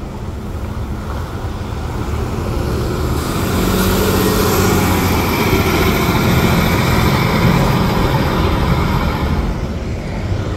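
A city bus engine rumbles loudly as the bus pulls away close by.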